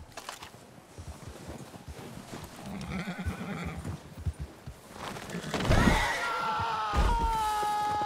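A horse's hooves thud on snow.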